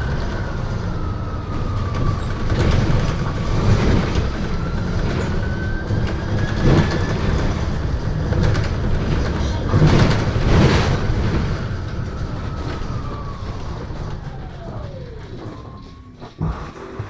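A bus engine rumbles and whines as the bus drives along.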